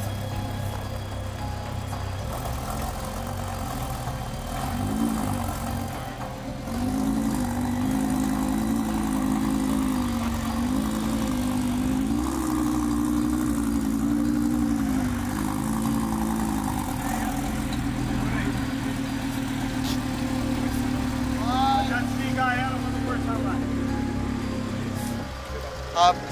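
A sports car engine idles and revs.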